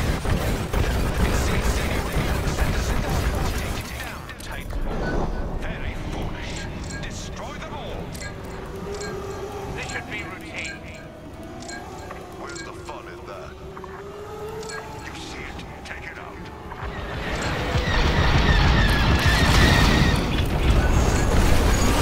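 Spaceship engines roar and laser blasts fire in a game.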